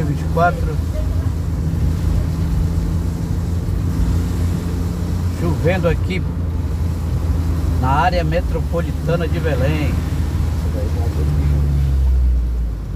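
A car drives along a street, heard from inside.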